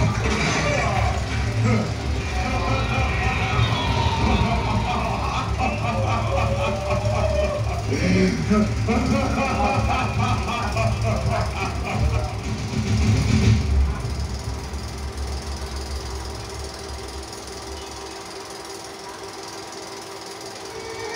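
A film soundtrack plays loudly over loudspeakers outdoors.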